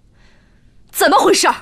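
A young woman speaks loudly into a phone, close by.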